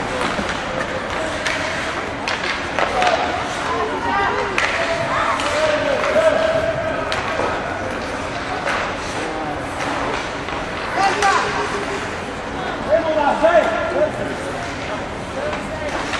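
Young players shout and call out across a large echoing rink.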